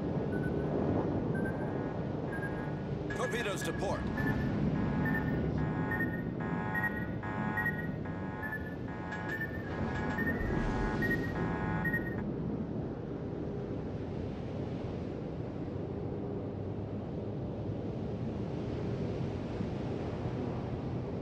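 Water rushes and splashes against a ship's hull.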